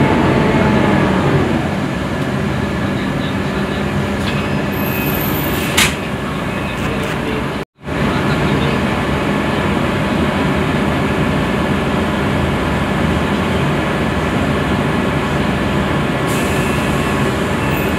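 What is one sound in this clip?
A bus engine hums and rumbles steadily from inside the cabin.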